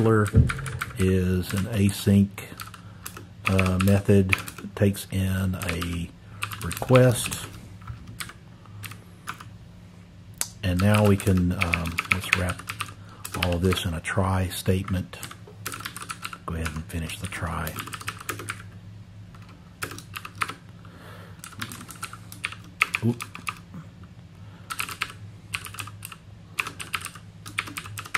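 Computer keys clatter in quick bursts of typing.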